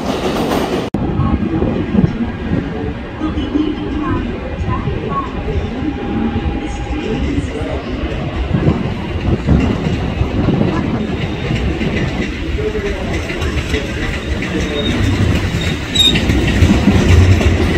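A train rolls slowly along the tracks, quieter and farther off.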